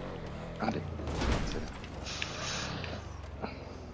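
A truck lands with a heavy thud.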